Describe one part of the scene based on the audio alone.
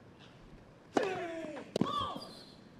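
A racket hits a tennis ball sharply.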